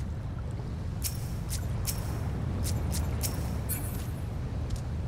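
Sharp magical hits crack and ring out in a short fight.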